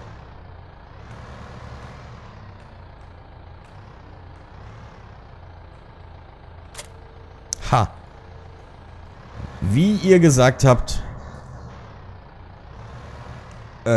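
A tractor engine idles and rumbles steadily.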